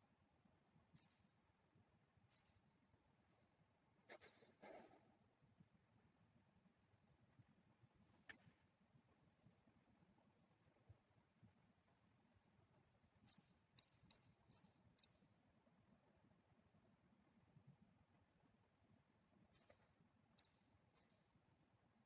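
Game pieces click softly into place from time to time.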